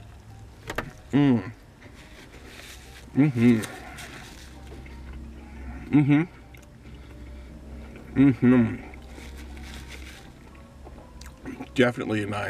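A man chews food noisily with his mouth close.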